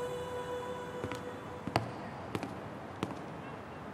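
Footsteps click on a hard path.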